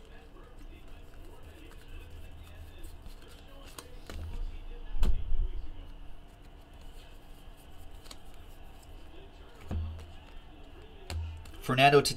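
Trading cards rustle and flick as a hand shuffles them.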